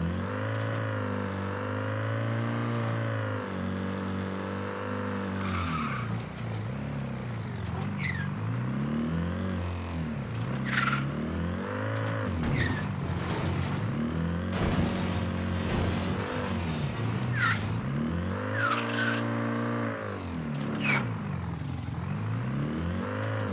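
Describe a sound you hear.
A forklift engine hums and revs up and down.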